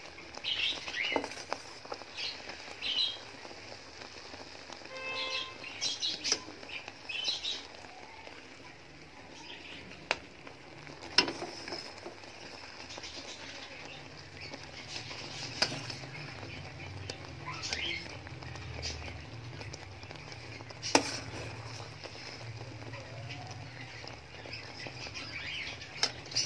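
Oil sizzles and bubbles steadily in a pan.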